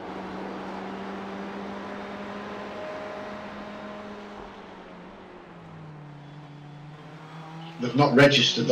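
A racing car engine hums steadily, its pitch dropping as it slows.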